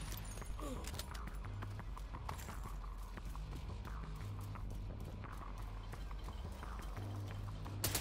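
Footsteps run over hard ground.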